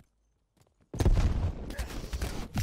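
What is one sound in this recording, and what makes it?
Loud gunshots ring out close by.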